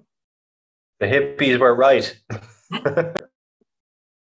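A man speaks and laughs over an online call.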